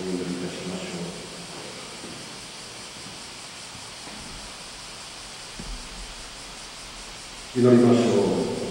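An elderly man chants slowly into a microphone, heard over loudspeakers in an echoing hall.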